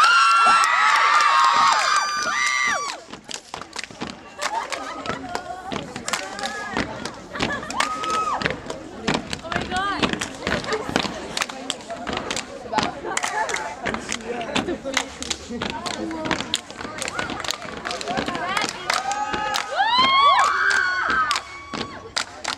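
A crowd of young people screams and cheers loudly outdoors.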